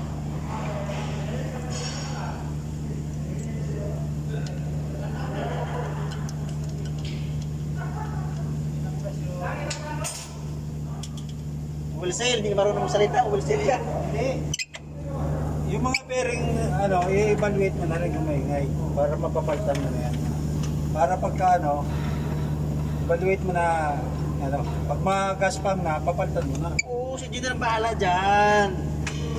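Hands rub and tap against a metal engine pulley and belt.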